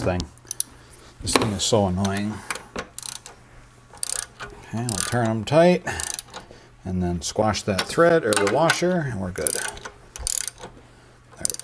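A ratchet wrench clicks as it turns.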